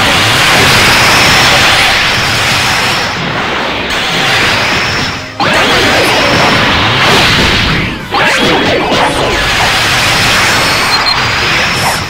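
A rushing whoosh sweeps past as a fighter flies at speed.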